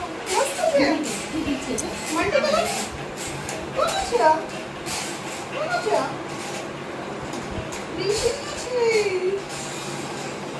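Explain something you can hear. Women chat and laugh together nearby, with lively voices.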